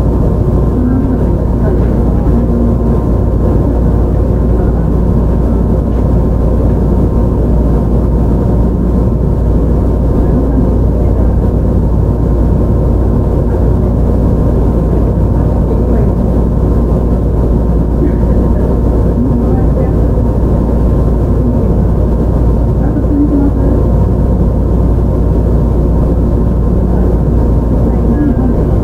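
An electric train hums steadily close by.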